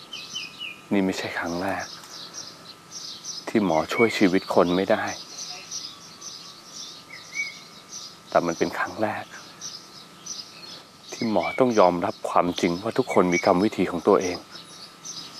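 A young man speaks in a low, troubled voice nearby.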